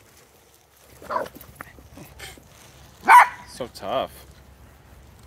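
Dogs bark and yelp in short bursts nearby.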